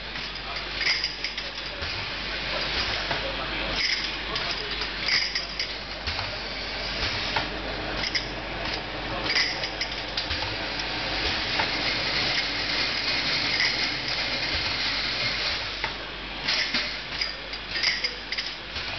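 A filling nozzle hisses with short bursts of air.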